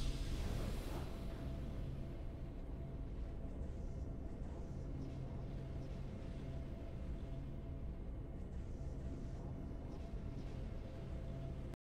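A soft, steady victory tune plays.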